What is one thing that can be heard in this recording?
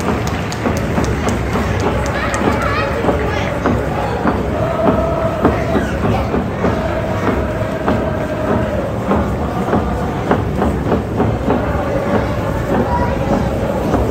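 A large crowd of fans chants in unison outdoors.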